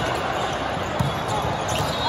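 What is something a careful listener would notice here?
A volleyball is struck with a slap.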